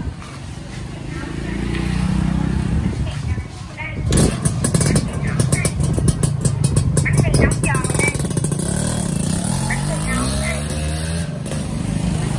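A motorcycle engine idles with a rapid putter close by.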